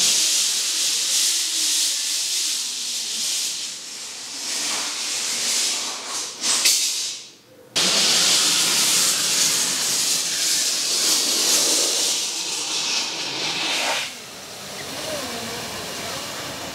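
A hose drags and scrapes along the ground.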